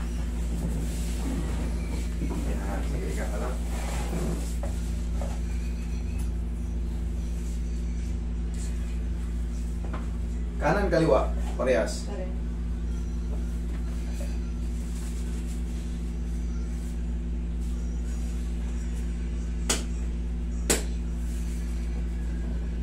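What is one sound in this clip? An air conditioner hums steadily.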